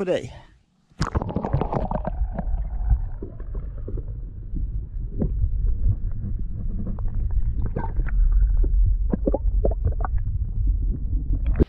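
Water sloshes and bubbles, heard muffled from underwater.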